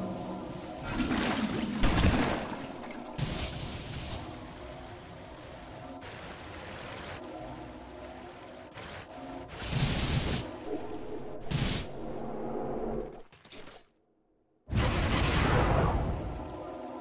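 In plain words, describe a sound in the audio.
Magic spells burst with loud whooshing swells.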